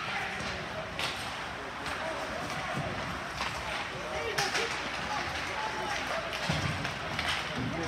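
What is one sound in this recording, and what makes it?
Hockey sticks clack against a puck in a large echoing rink.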